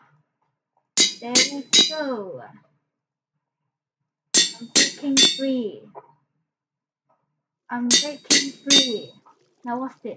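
An anvil clangs several times with a bright ringing tone.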